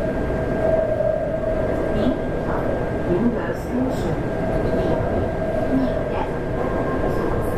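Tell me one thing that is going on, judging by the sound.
A train rumbles steadily along an elevated track, heard from inside a carriage.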